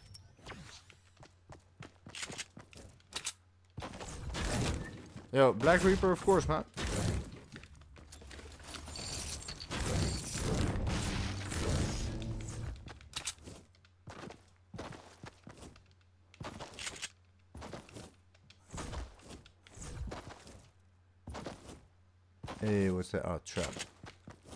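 Footsteps patter quickly on the ground.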